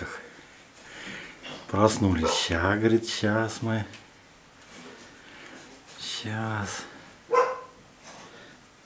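Raccoons' claws scrabble on a wooden shelf.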